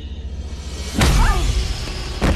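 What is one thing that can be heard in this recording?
A body thuds heavily onto a floor.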